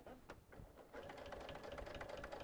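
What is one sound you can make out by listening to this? A sewing machine stitches rapidly with a steady hum.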